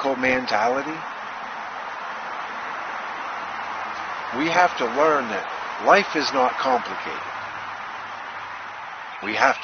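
A middle-aged man speaks with animation, close to a microphone, in short bursts with pauses.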